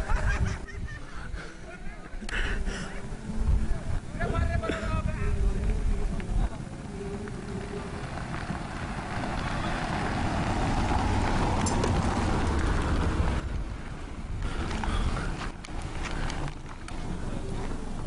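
A car engine hums as the car approaches slowly.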